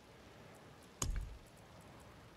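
A soft game menu click sounds.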